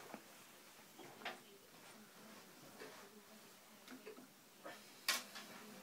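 A guitar bumps and thuds as someone handles it.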